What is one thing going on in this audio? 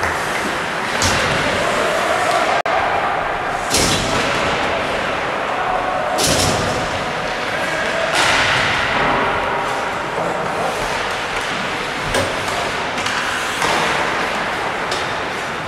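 Hockey sticks clack against the puck in an echoing rink.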